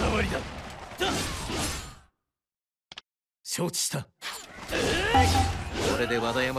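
Swords clash and slash in a loud video game battle.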